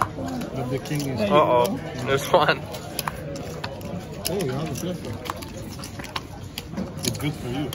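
Poker chips clack together on a table.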